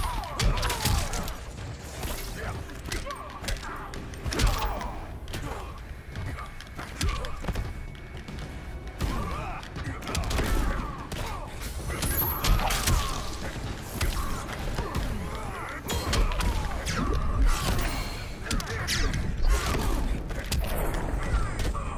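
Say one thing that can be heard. Punches and kicks land with heavy thuds and cracks.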